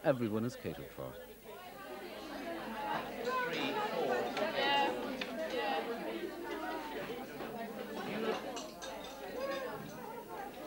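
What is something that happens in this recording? A crowd of young women chatter in a busy room.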